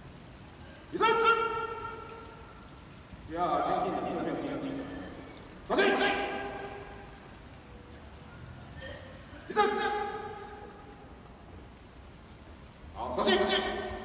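A marching band plays loud, sustained brass chords in bursts, with pauses between them, outdoors.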